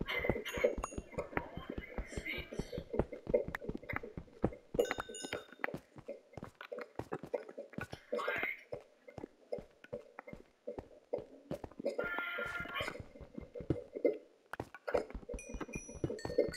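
Stone blocks crumble and break apart.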